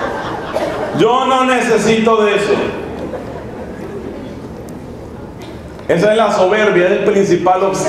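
A man sings through a microphone in an echoing hall.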